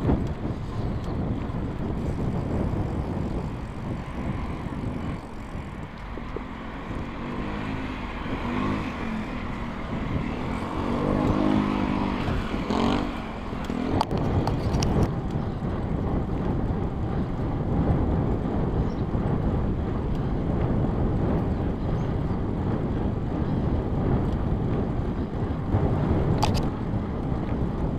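Wind rushes loudly past the bicycle rider.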